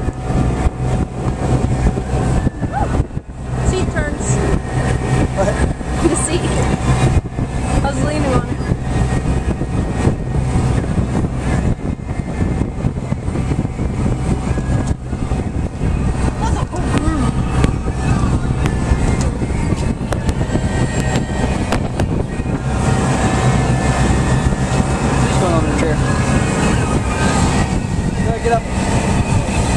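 A boat engine rumbles steadily while moving over water.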